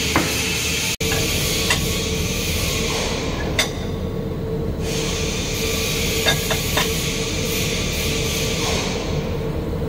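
An electric welding arc crackles and hisses.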